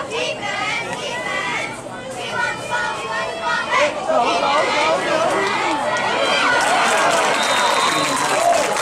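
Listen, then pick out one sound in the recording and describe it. A crowd of spectators cheers and shouts outdoors, growing louder.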